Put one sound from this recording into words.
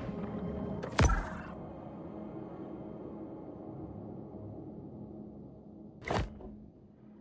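A menu selection clicks softly.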